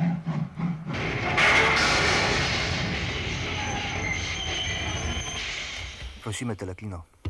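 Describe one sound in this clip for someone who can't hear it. A steam train roars past.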